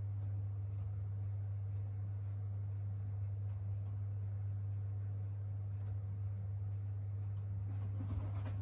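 Wet laundry tumbles softly inside a washing machine drum.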